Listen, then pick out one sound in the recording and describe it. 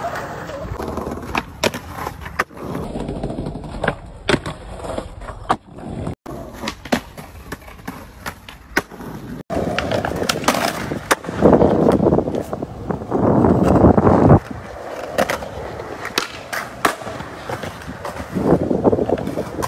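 A skateboard's tail pops and its wheels slap down on landing.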